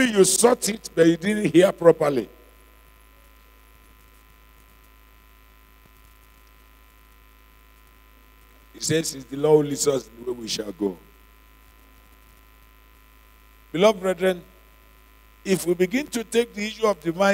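A man preaches through a microphone with animation, in bursts with long pauses.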